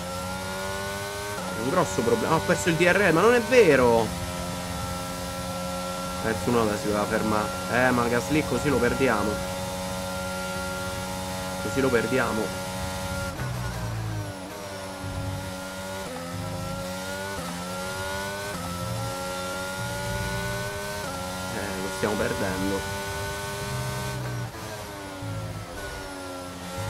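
A racing car engine whines at high revs, rising in pitch and dropping sharply with each gear change.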